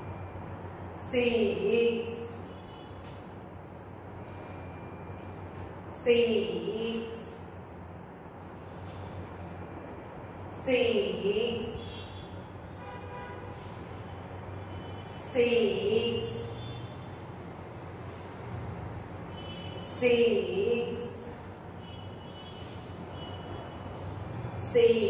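A young woman speaks clearly and loudly in short bursts, close by, in a room with some echo.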